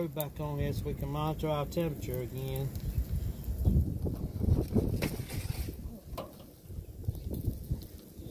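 Metal tongs clink against a grill grate.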